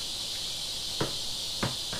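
Metal knocks sharply against a bin.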